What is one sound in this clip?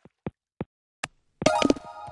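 A ball drops into a cup with a knock.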